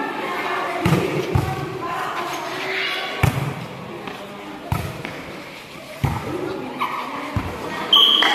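Young women shout and call out to each other during play.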